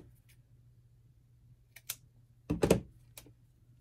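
Scissors snip through lace.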